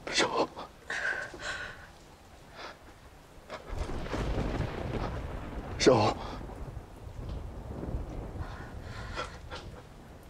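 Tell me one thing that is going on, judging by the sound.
A young woman moans weakly.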